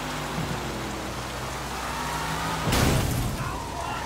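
Tyres skid on a wet road.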